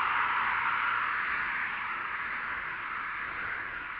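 Cars pass by on a road nearby.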